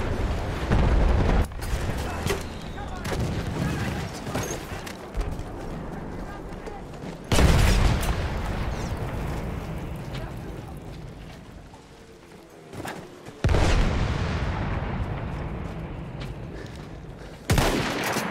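Gunshots crack loudly, one after another, with booming echoes.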